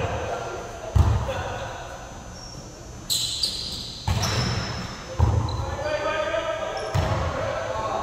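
A volleyball is hit with sharp smacks in a large echoing gym.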